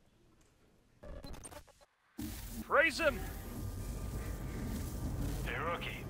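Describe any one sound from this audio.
Electronic static hisses loudly.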